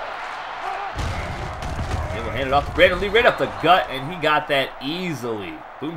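Football players collide in a heavy tackle.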